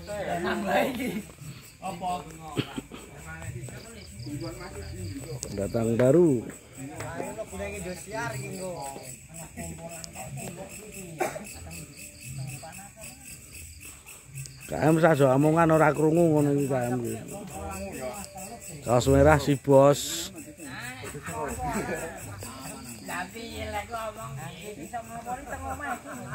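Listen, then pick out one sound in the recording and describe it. Several men chat casually nearby.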